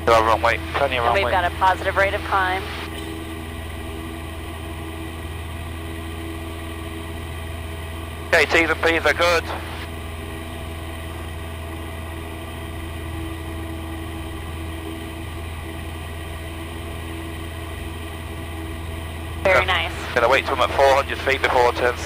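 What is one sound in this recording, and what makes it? A small propeller plane's engine drones steadily from close by.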